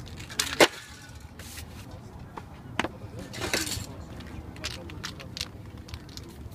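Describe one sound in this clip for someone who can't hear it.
Spray cans hiss in short bursts.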